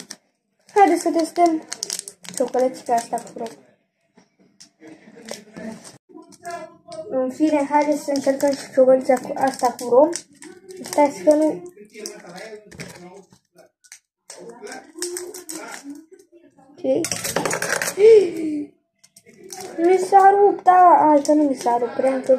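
A candy wrapper crinkles in a boy's hands.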